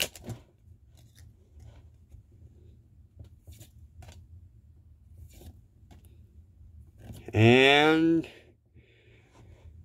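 Playing cards slide against each other.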